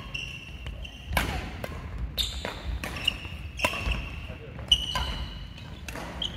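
Sports shoes squeak on a hard floor.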